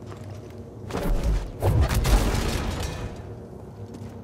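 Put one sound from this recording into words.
A metal lift door clanks and rattles.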